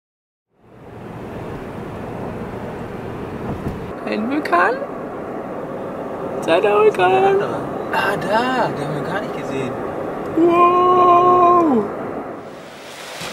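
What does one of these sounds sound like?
A car hums steadily along a road from inside.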